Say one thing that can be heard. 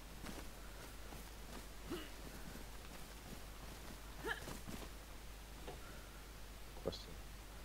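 Footsteps rustle through grass and undergrowth.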